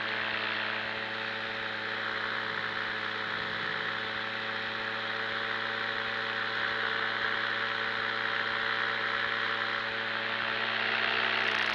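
A motor drones steadily close by.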